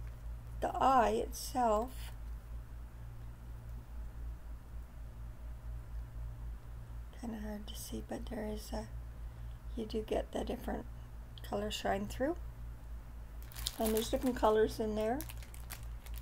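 An older woman speaks calmly and close by, in short bursts.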